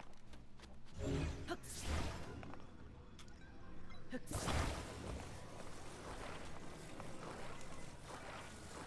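A soft electronic whoosh swells and fades.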